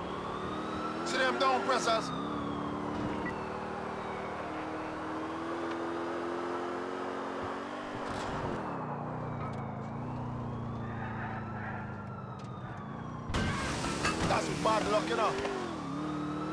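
Tyres screech in sharp turns.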